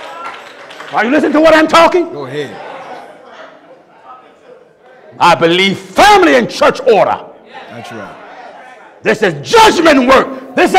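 A man preaches forcefully into a microphone, his voice rising in loud bursts and echoing through a hall.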